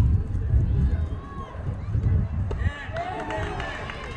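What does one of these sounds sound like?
A metal bat strikes a baseball with a sharp ping.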